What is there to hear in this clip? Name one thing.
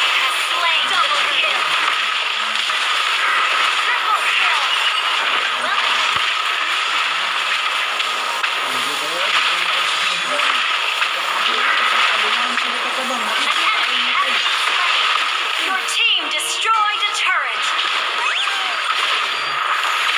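Game spells and attacks crackle and blast in quick bursts.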